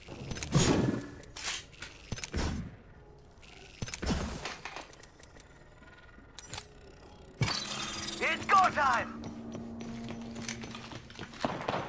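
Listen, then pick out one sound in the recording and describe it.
Footsteps clatter on a metal floor.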